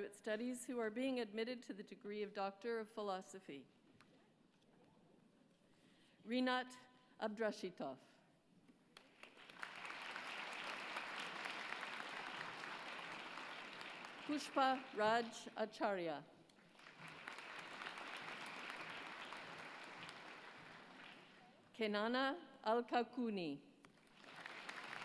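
An elderly woman reads out names calmly through a microphone in a large hall.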